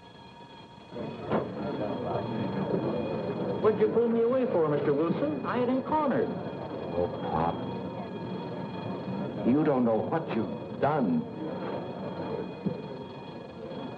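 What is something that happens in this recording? A man speaks in a low, strained voice close by.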